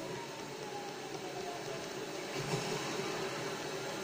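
Water splashes as someone wades through a stream, heard through a television speaker.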